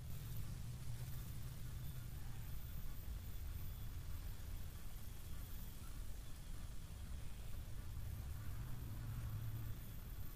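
Leaves rustle softly close by.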